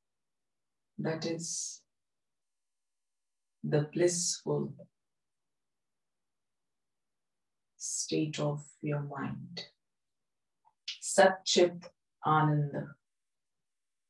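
A woman speaks calmly and softly into a close microphone, with long pauses.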